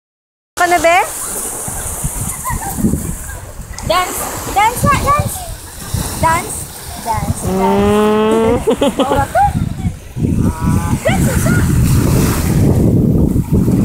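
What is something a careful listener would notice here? Small waves lap gently on the shore.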